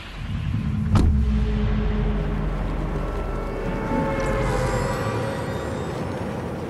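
Wind rushes loudly past a falling figure in a video game.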